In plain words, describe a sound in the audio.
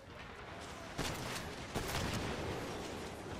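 Explosions boom with heavy blasts.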